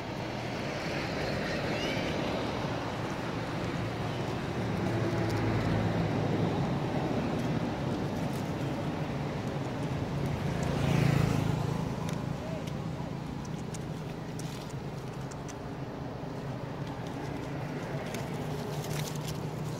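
A monkey rustles through dry leaves and grass.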